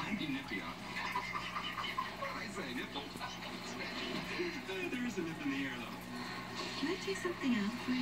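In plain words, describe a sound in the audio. Voices from a film play through a television.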